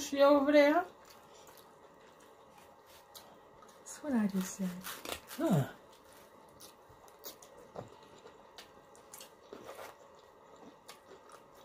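Noodles are slurped and chewed close to a microphone.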